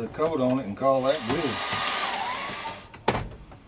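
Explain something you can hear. A hair dryer blows briefly.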